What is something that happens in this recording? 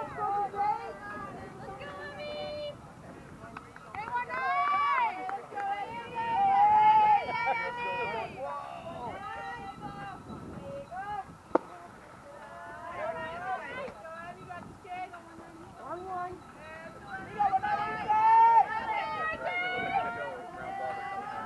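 Young women shout and cheer from a distance outdoors.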